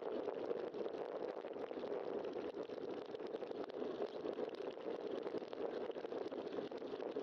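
Bicycle tyres roll steadily over a paved road.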